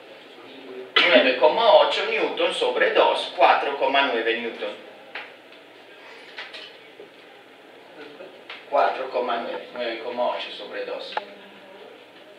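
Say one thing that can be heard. A young man speaks calmly, close by, with a slight room echo.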